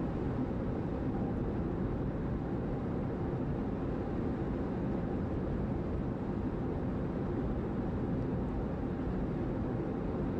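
Tyres rumble steadily on a paved road.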